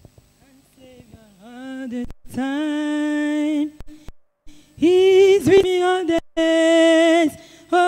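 A woman sings loudly through a microphone, echoing in a large hall.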